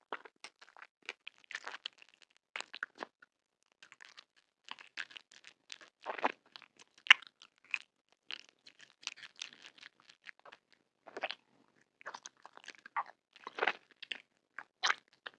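Wet mouth sounds smack and squelch up close as a gummy candy is licked and sucked.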